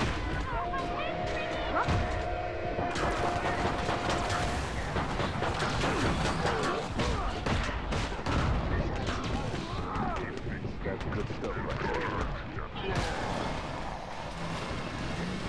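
A pistol fires in quick bursts.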